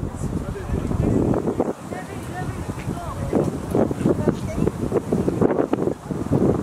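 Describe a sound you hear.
Adult spectators talk and call out nearby, outdoors.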